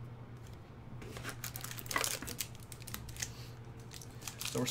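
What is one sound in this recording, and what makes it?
A cardboard box rustles as a hand pulls at it.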